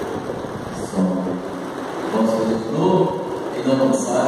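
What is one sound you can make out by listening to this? A man chants in a large echoing hall.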